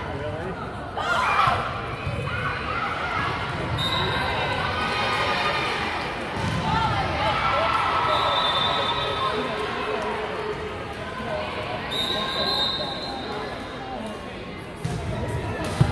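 A volleyball thumps off a player's arms.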